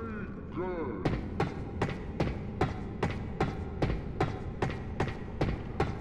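Heavy armoured footsteps clank quickly and evenly on stone.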